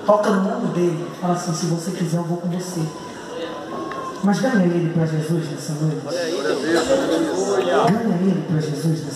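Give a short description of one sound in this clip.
A man speaks loudly and with feeling over a loudspeaker in a large echoing hall.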